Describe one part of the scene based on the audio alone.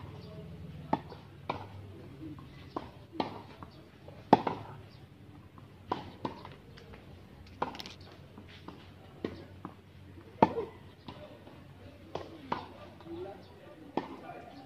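A tennis racket hits a ball with sharp pops.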